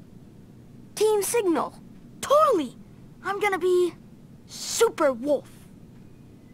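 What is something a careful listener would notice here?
Young boys shout excitedly.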